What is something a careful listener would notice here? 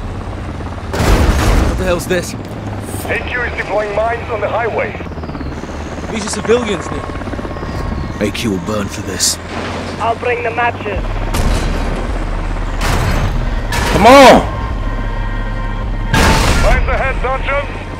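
Explosions boom loudly nearby.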